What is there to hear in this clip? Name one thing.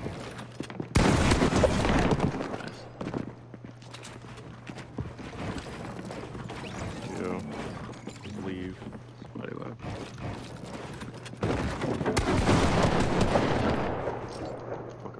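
Gunshots and building sounds from a game ring out in quick bursts.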